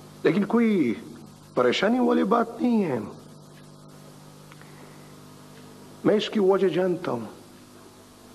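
A middle-aged man speaks firmly and with emphasis, close by.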